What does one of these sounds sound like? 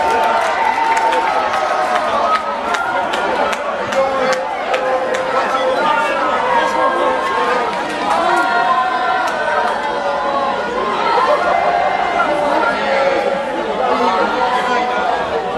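A crowd of fans sings and chants loudly outdoors.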